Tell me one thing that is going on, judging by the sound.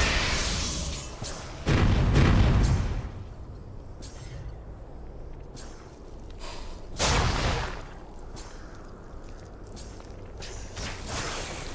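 Magic spells burst and crackle during a fight.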